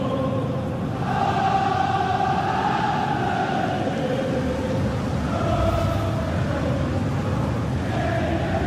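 A stadium crowd cheers loudly as the ball goes in.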